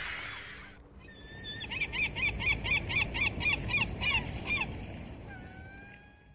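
Gentle waves lap on the open sea.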